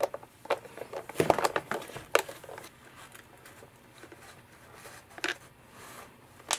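A screwdriver clicks and scrapes as it turns screws out of hard plastic.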